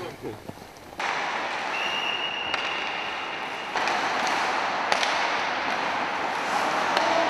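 Ice skates scrape and hiss across ice.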